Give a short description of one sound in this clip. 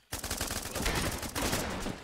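A gun fires a short burst of shots.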